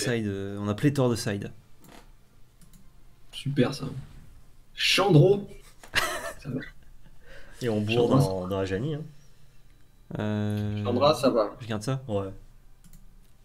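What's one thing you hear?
Young men talk with animation close to a microphone.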